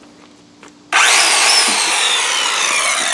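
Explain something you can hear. A circular saw whirs loudly as it starts.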